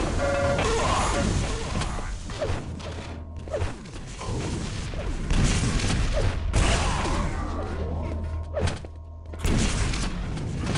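Rockets explode with heavy booms.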